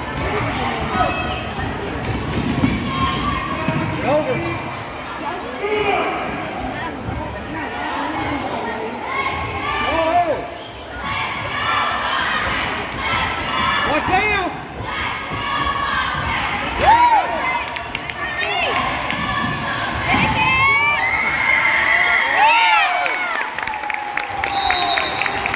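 A basketball thumps as it is dribbled.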